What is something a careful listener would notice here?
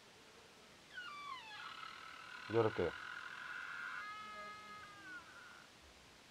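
A door creaks slowly open.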